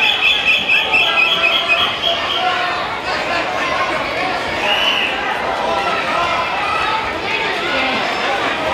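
A large indoor crowd chatters and calls out, echoing in a big hall.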